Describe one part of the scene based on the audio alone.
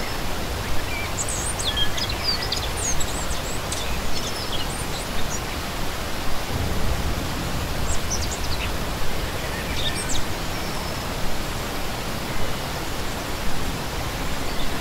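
A shallow stream rushes and splashes steadily over rocks.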